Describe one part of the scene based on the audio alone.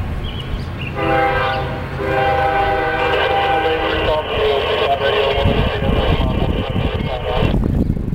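A diesel locomotive rumbles closer and rolls past.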